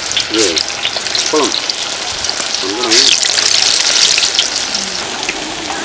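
Batter sizzles and crackles loudly in hot oil.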